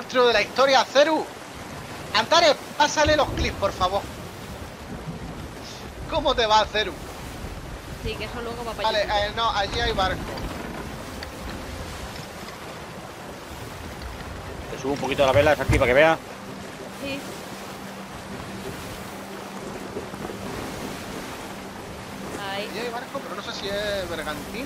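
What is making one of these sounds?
Ocean waves wash and roll against a wooden ship.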